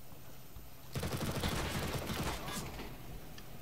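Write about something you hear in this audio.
Rapid gunshots rattle at close range.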